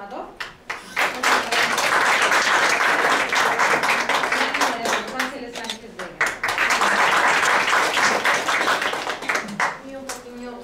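An audience applauds loudly in a large room.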